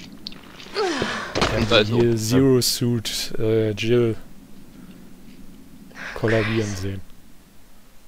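A young woman groans and gasps in pain.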